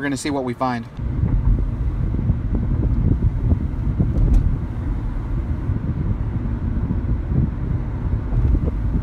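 A car rumbles steadily along a road.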